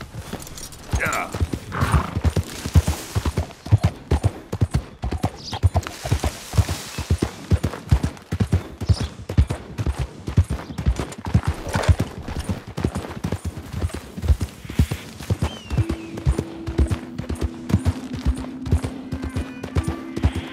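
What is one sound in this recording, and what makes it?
A horse's hooves thud rhythmically at a steady gallop.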